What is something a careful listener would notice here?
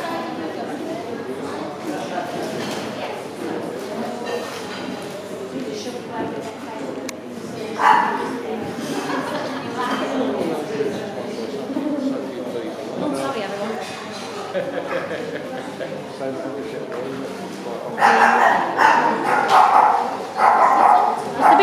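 Men and women chatter in a large echoing hall.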